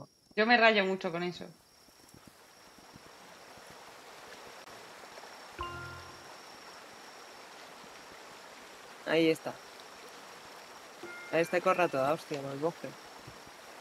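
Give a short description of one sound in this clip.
A young woman talks with animation into a microphone in short bursts.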